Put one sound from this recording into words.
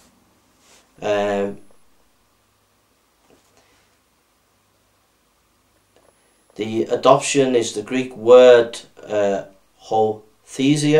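A man reads aloud calmly, close by.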